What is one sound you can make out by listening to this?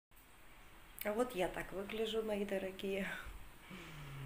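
A middle-aged woman speaks close by, calmly and with animation.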